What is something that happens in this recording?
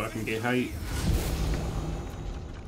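A magical spell bursts with a shimmering whoosh.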